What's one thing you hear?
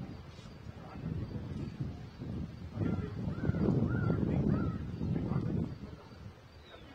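Men talk to each other at a distance outdoors.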